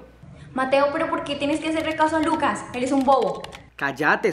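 A teenage girl speaks over an online call.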